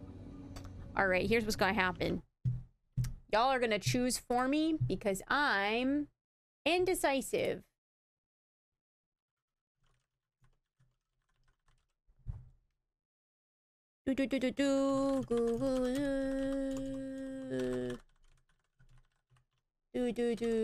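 A young woman talks with animation through a microphone, close by.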